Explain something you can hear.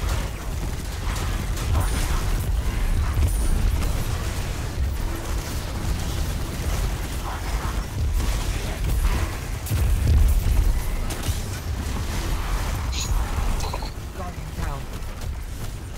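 Energy blasts and explosions boom.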